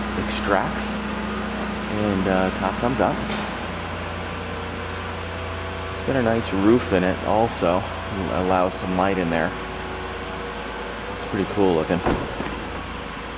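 An electric motor hums steadily as a car's folding roof slowly closes.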